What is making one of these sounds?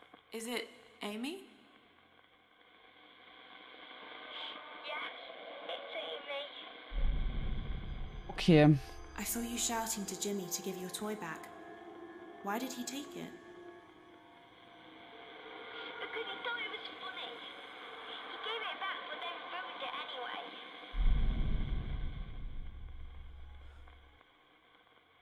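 A young woman talks with animation into a microphone, close by.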